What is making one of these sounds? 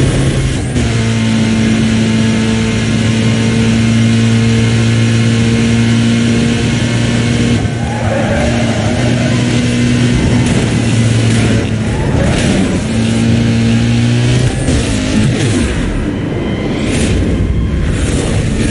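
A racing car engine roars at high revs.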